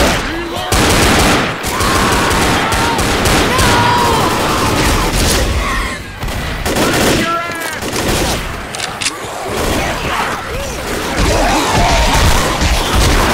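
Zombies snarl and shriek close by.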